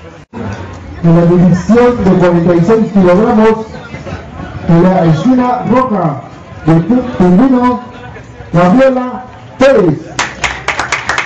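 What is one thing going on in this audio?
A man announces loudly outdoors.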